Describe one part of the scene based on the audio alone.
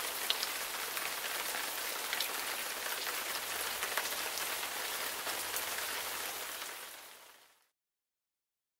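Rain falls steadily outdoors, pattering with small drips, then fades away.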